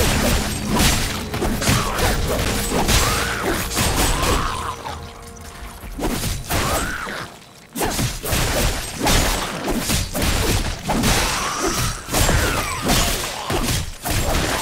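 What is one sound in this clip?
Game monsters shriek and growl.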